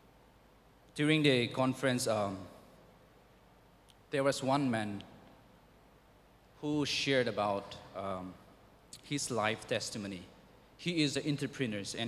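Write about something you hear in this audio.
A young man speaks calmly into a microphone in short phrases, with pauses, in a large echoing hall.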